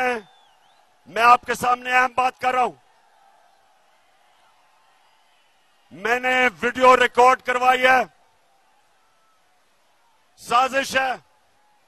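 A man speaks forcefully through a microphone and loudspeakers, in short bursts with pauses.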